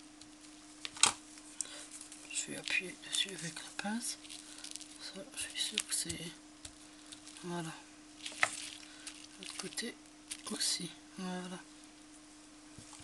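Cord rustles and scrapes against cardboard.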